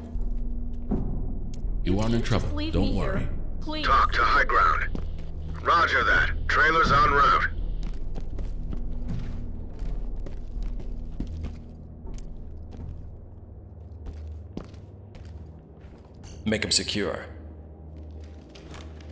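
Footsteps shuffle slowly along a hard floor.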